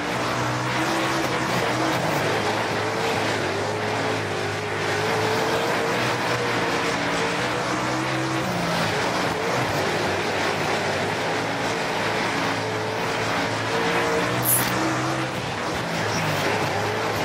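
Tyres rumble and skid over loose dirt.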